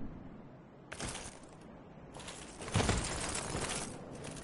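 Footsteps crunch over dry leaves.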